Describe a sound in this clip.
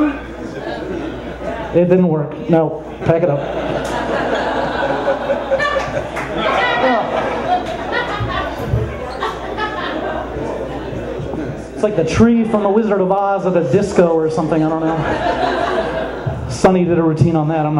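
An audience chatters and laughs in the background.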